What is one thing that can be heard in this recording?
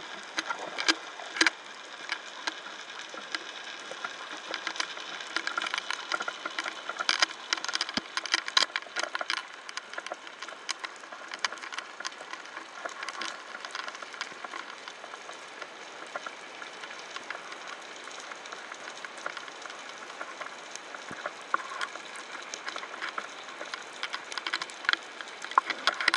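Underwater, a dense crackle of tiny clicks and pops comes from the reef throughout.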